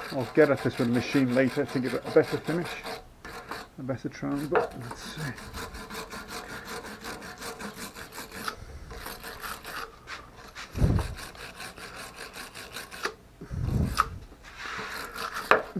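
A wire brush scrubs rapidly against metal.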